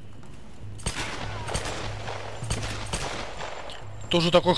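Gunshots crack in quick succession.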